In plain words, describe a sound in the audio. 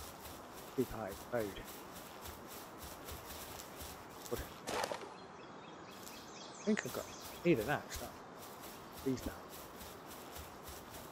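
Footsteps swish through grass at a running pace.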